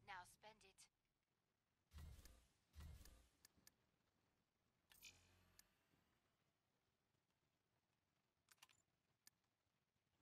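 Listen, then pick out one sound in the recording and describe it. Short electronic clicks sound as game menu items are picked.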